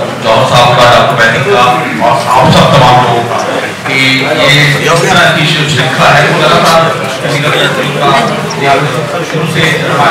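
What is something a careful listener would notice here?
A middle-aged man speaks steadily into a microphone, heard through a loudspeaker in a room.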